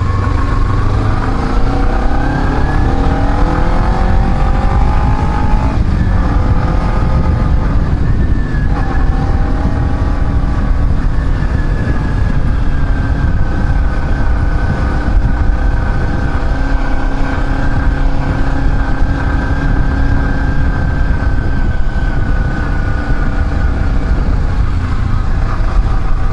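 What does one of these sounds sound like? A motorcycle engine hums close by, revving up and dropping back.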